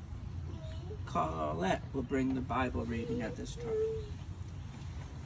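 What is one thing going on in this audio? An elderly man speaks gently outdoors.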